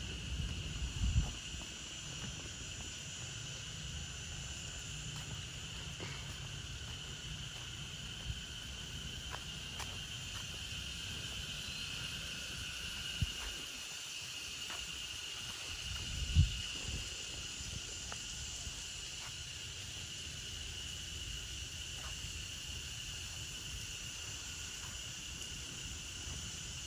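Wind gusts softly across the microphone outdoors.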